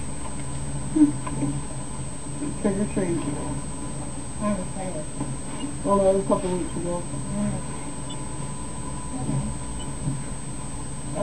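A woman talks close by in a low, casual voice.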